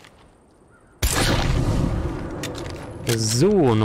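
A pistol shot rings out.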